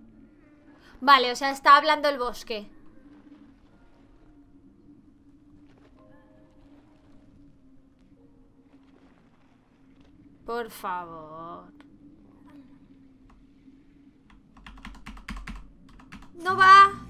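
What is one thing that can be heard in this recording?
A young woman speaks with feeling into a close microphone, in short bursts.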